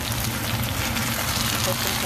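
A utensil scrapes and stirs food in a pan.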